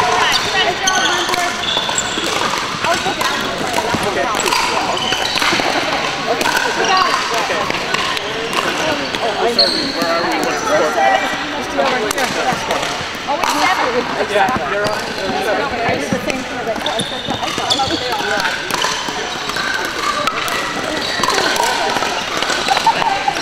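Many voices chatter in a large echoing hall.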